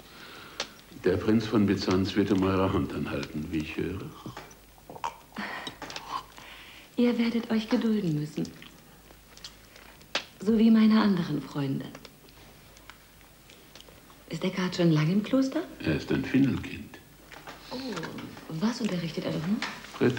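An elderly man speaks with a low, intense voice close by.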